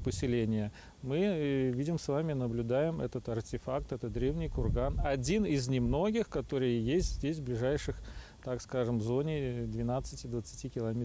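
A middle-aged man speaks calmly outdoors, close to a microphone.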